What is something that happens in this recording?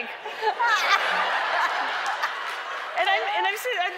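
An audience laughs and cheers loudly.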